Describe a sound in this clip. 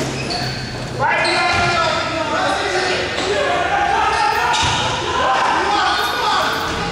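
Spectators and players shout and cheer loudly in a large echoing hall.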